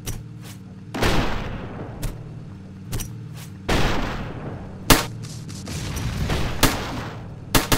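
Explosions boom and rumble away.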